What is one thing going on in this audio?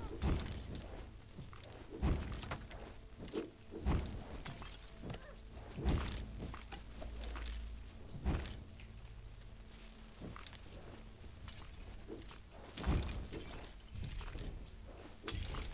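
Sword slashes and magic blasts strike with heavy thuds and whooshes.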